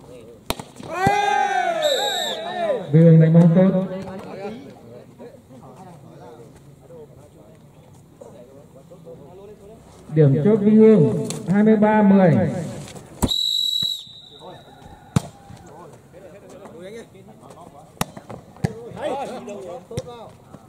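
Young men shout loudly outdoors.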